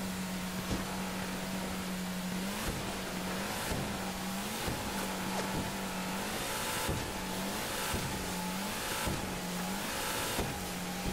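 Water rushes and sprays along the hull.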